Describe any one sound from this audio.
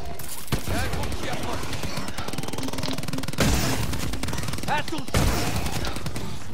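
An energy gun fires with loud crackling electric bursts.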